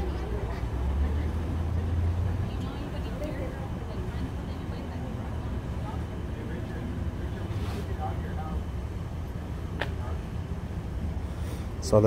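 Men and women talk quietly at a distance, outdoors.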